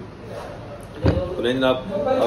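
A cardboard box thumps down onto a table.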